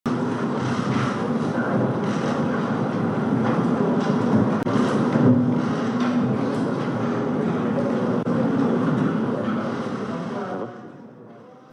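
A crowd of men murmurs and chatters nearby.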